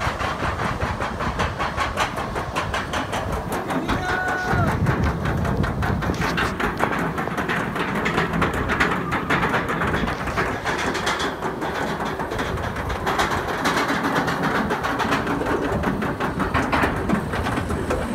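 A roller coaster's lift chain clicks and clatters rapidly and steadily.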